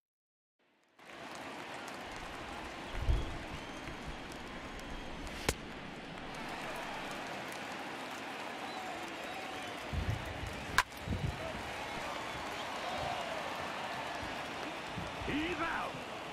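A stadium crowd murmurs in the background.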